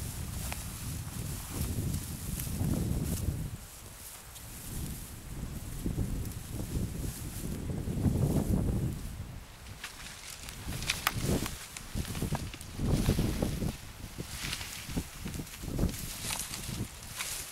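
Dry grass rustles and crunches as someone walks through it.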